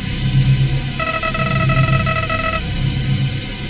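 Rapid high electronic blips chatter as dialogue text types out.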